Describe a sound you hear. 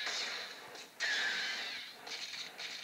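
A futuristic energy gun fires with a sharp, buzzing hiss.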